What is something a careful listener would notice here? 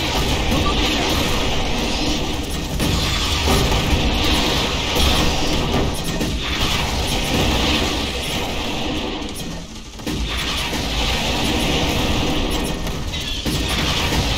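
Gunfire rattles steadily in a game battle.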